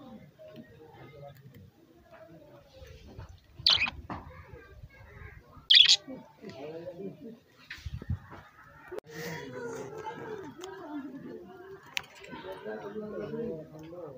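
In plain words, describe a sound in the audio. A budgerigar pecks and cracks seeds.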